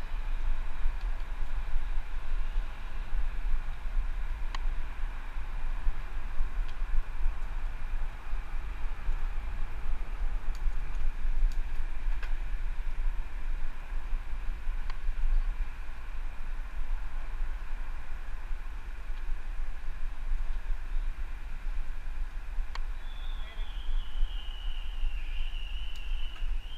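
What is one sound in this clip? Wind rushes and rumbles steadily past.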